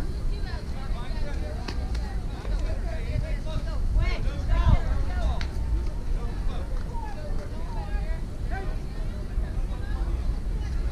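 Young girls call out and chatter across an open field.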